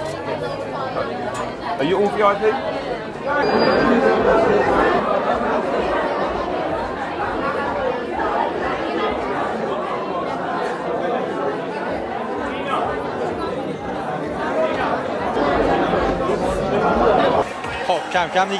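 A crowd chatters loudly all around, echoing in a large hall.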